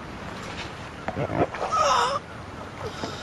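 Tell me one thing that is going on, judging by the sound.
A man groans and cries out in pain close by.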